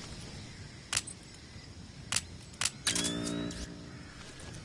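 Short electronic clicks and beeps sound in quick succession.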